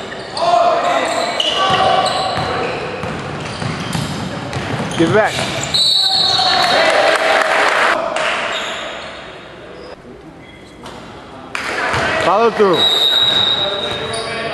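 A small crowd cheers and calls out in an echoing gym.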